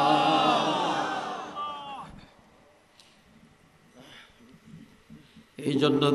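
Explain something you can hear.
An elderly man preaches loudly and with passion through a microphone and loudspeakers, his voice echoing.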